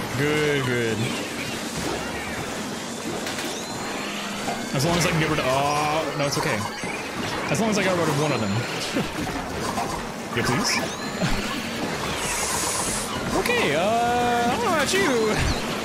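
Electronic game sound effects splat, pop and whoosh.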